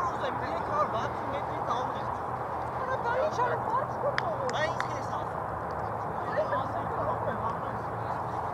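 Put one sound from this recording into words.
Young men shout and cheer outdoors in an open field.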